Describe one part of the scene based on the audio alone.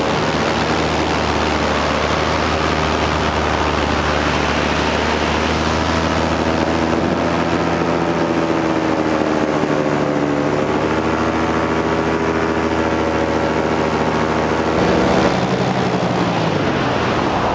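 Wind rushes past in flight.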